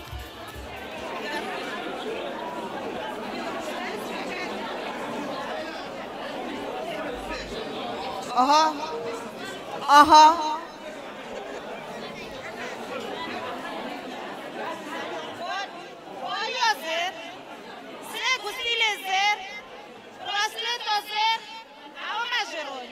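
A middle-aged woman talks with animation into a microphone, heard through loudspeakers.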